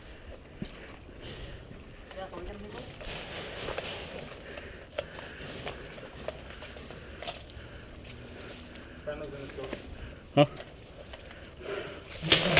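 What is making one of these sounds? Footsteps rustle through tall weeds outdoors.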